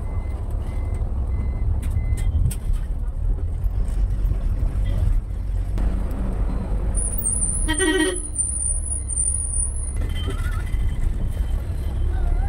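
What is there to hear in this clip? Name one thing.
A vehicle engine rumbles steadily while driving along a road.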